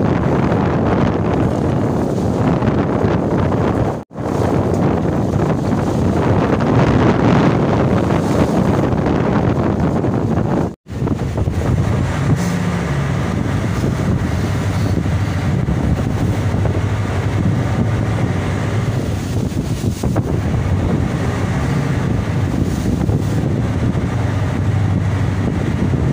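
Waves slosh and splash against a boat's hull.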